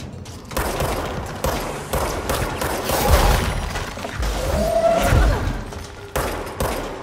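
A pistol fires repeated loud shots.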